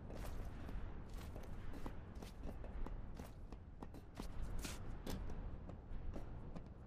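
Footsteps clank quickly on metal.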